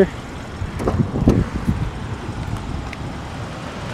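A car door unlatches and swings open.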